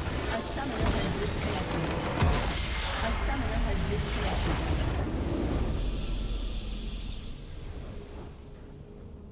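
A magical blast roars and crackles loudly, then slowly fades away.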